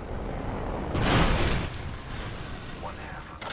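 A smoke grenade bursts with a loud rushing hiss.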